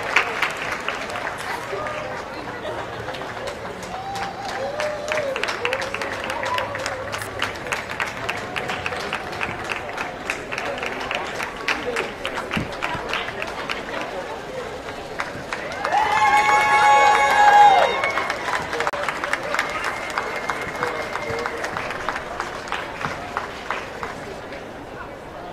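A crowd claps along in a steady rhythm in a large, open space.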